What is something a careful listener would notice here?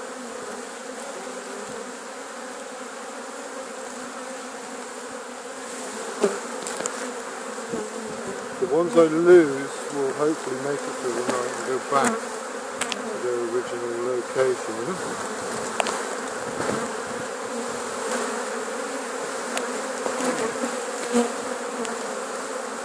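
Many bees buzz loudly and steadily close by.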